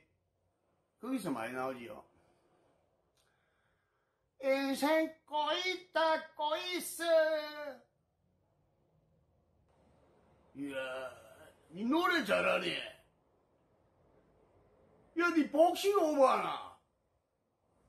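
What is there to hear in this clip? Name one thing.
A man sings loudly and with feeling in short bursts, close to a microphone.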